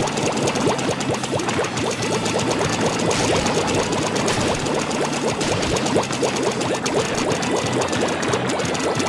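Cartoon ink blasters fire in rapid, splattering bursts.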